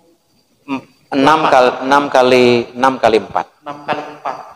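Another man replies briefly close to a microphone.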